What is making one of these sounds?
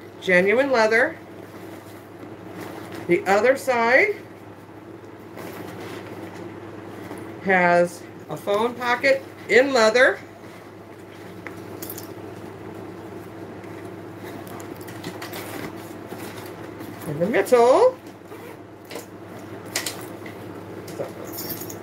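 A leather handbag rustles and its buckles clink as it is handled.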